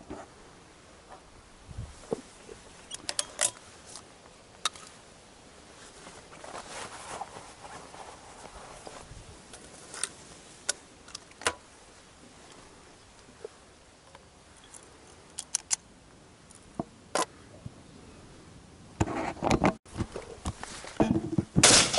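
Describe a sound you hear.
Netting rustles and scrapes close by.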